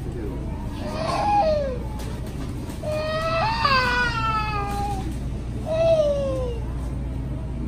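A toddler babbles and squeals in high bursts.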